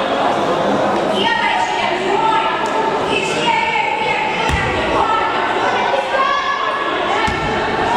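Young women and girls shout and call out across a large echoing hall.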